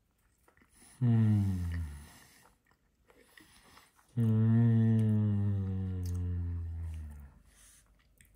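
A man hums loudly in approval, close by.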